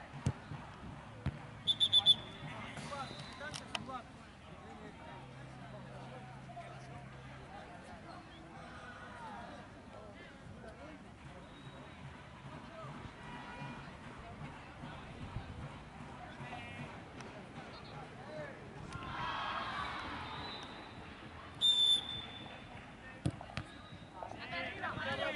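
Young men call out across an open field in the distance.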